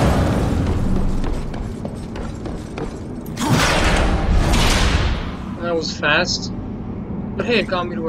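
Heavy armoured footsteps thud on a stone floor.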